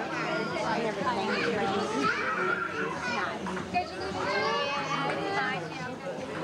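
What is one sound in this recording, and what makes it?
Several women and men chat and talk over one another nearby, outdoors.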